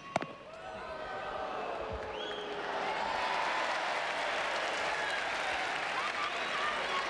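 A large outdoor crowd cheers and whistles, growing louder.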